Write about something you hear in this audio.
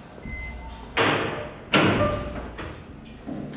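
A heavy metal door clanks open.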